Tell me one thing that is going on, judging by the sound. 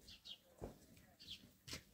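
A broom sweeps with short, brushing strokes.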